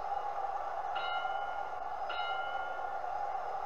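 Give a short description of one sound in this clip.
A boxing ring bell rings twice.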